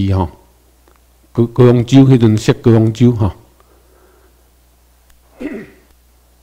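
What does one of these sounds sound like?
A man speaks calmly into a microphone through loudspeakers.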